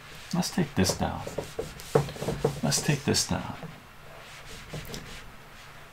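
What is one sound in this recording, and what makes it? A whiteboard eraser rubs across a board.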